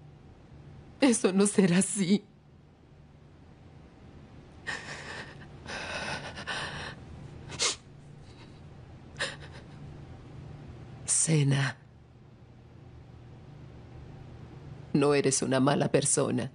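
An older woman speaks tearfully and close by.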